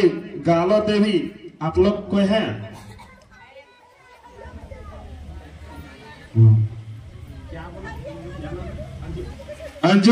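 A middle-aged woman speaks loudly with animation through a microphone and loudspeaker, outdoors.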